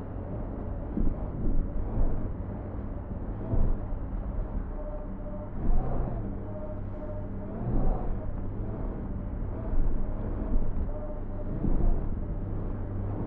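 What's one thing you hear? A vehicle's wheels thump over rough ground.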